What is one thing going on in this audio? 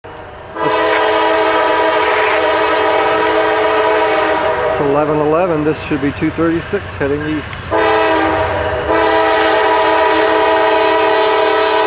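A train horn blows long, loud blasts.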